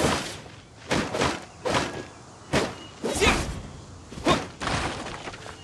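A spear swishes and strikes in quick bursts.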